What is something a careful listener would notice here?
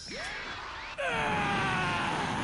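A large energy blast roars and hums.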